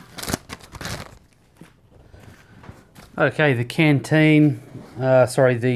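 Fabric rustles as a man handles a canvas pouch.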